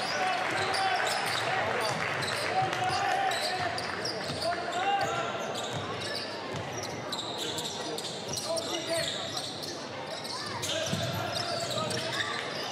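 A basketball bounces on a hardwood floor as a player dribbles.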